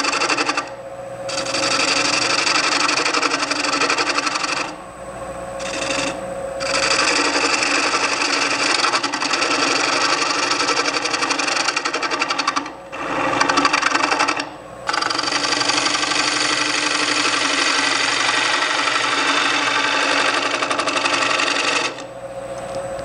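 A wood lathe's chisel scrapes and hisses against spinning wood.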